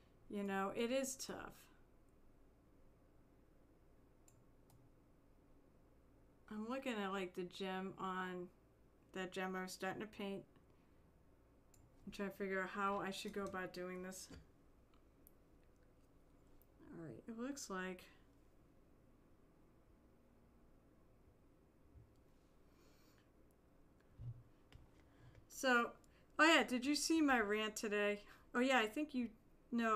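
A woman talks calmly into a close microphone, in short bursts with pauses.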